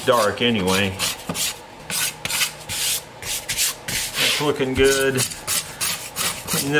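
A sanding block rubs back and forth on wood in quick strokes.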